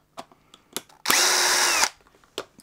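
A cordless drill whirs briefly, its motor pitch dipping as it stops.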